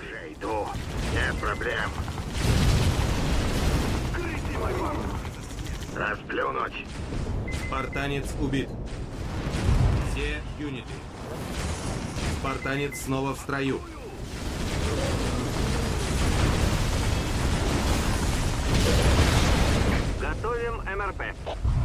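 Gunfire rattles in a battle.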